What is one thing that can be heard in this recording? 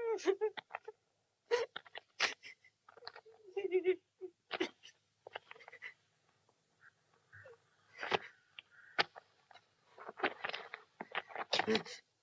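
A young boy cries out and shouts in distress.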